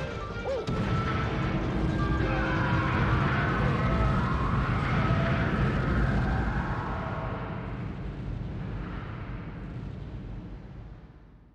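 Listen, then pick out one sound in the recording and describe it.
A huge explosion booms and rumbles, then slowly fades away.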